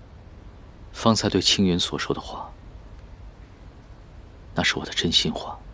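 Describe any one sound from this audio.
A young man speaks softly up close.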